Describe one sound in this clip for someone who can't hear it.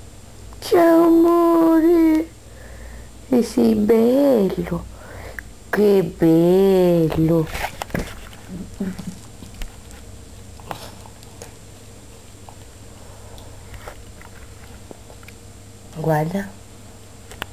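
A dog howls close by in long, wavering cries.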